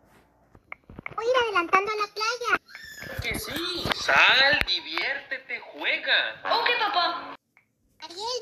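A young boy sings loudly nearby.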